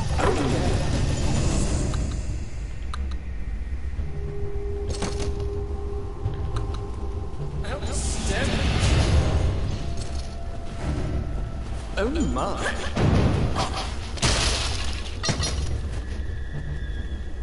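Weapons clash and spells burst in rapid fighting, with punchy blows and crackling effects.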